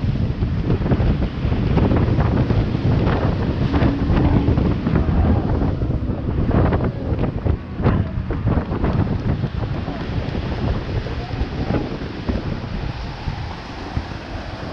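Wind buffets loudly outdoors.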